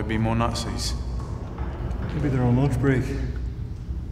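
A man speaks quietly and tensely.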